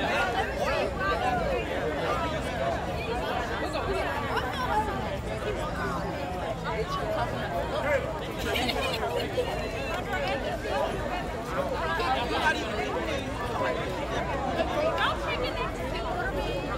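A crowd cheers in the distance.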